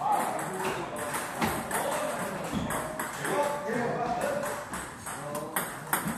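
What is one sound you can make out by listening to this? A ping-pong ball clicks on a table and paddles.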